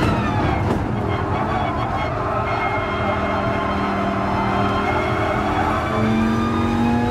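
Tyres squeal as a racing car brakes and corners.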